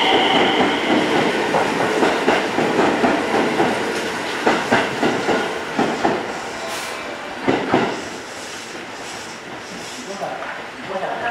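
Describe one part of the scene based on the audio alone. A train rumbles past close by and pulls away, its wheels clattering over rail joints.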